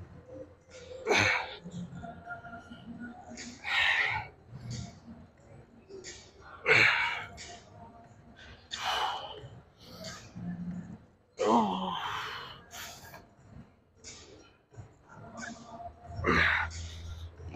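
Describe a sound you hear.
A young man breathes out hard with each pull.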